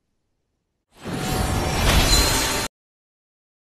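A triumphant game victory fanfare plays loudly and briefly.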